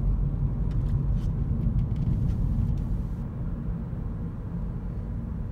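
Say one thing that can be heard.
A car's engine and tyres rumble steadily, heard from inside the car.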